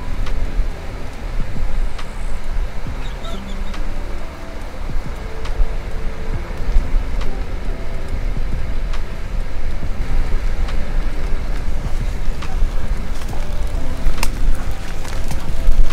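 Wind rumbles steadily across a moving microphone outdoors.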